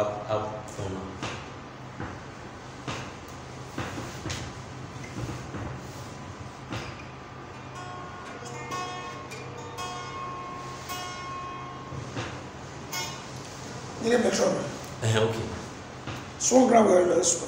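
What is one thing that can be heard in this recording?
An electric guitar plays plucked notes and chords.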